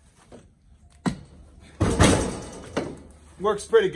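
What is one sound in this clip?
A heavy log thuds onto a pile of wood.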